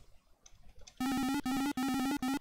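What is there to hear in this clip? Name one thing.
Electronic game beeps sound in a quick, steady pattern.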